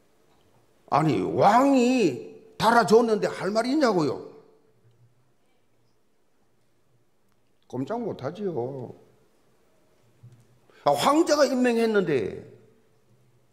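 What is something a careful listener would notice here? An elderly man preaches with emphasis through a microphone in a large echoing hall, pausing between phrases.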